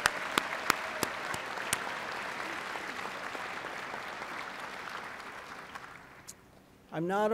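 An audience applauds and cheers in a large hall, then fades.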